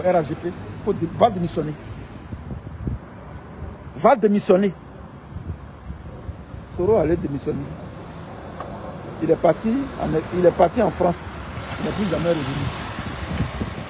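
A middle-aged man speaks calmly and close up into a phone microphone, pausing between phrases.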